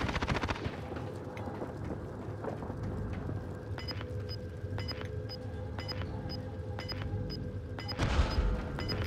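Footsteps thud steadily on a metal roof.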